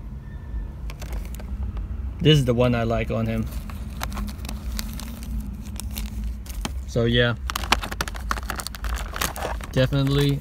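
Plastic wrapping crinkles and rustles close by.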